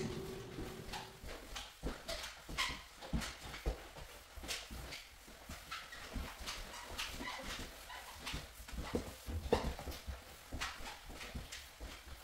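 A mop swishes and squeaks across a wet floor.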